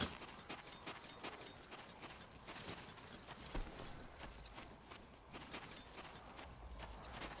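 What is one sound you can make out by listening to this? Footsteps crunch steadily on rough dry ground.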